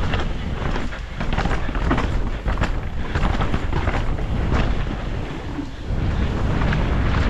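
A bike's frame and chain rattle over bumps.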